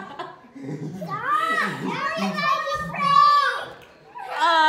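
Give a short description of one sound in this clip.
A young child shouts excitedly close by.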